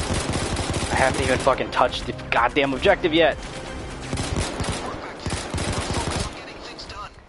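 Gunshots crack rapidly.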